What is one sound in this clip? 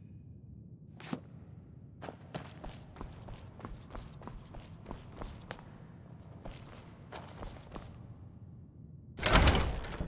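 Footsteps echo on a stone floor.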